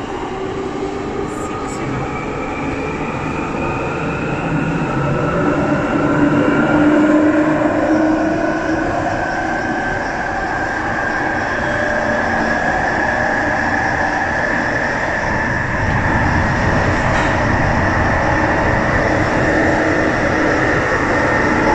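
A subway train rumbles and whines steadily along the track.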